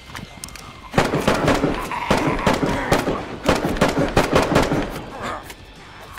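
Blows thud as a fight breaks out at close range.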